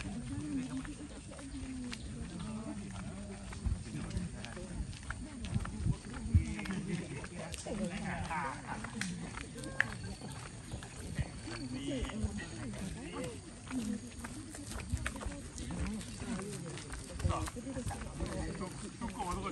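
Footsteps scuff on a paved road.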